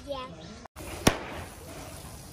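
A party popper bursts with a loud bang.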